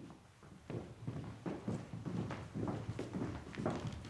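Footsteps tread across a wooden stage floor.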